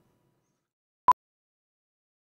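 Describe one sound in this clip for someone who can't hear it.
A short high test tone beeps once.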